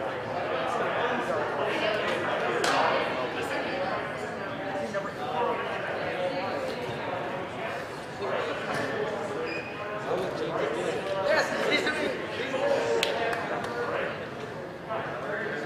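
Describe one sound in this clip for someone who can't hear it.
Players and spectators chatter and call out in a large echoing gym.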